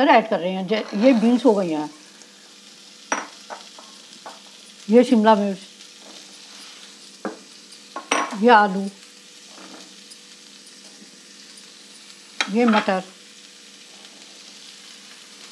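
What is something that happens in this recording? Food sizzles softly in a hot pan.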